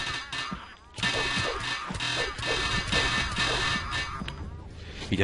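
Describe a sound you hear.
A sword swings and clangs against a creature in quick blows.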